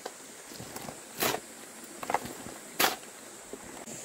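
A hoe scrapes and chops into dry soil.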